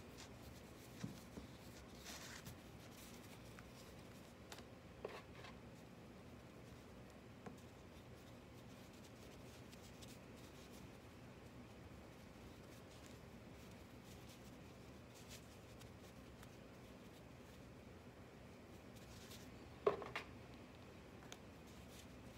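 A ceramic bowl knocks and scrapes on a table now and then.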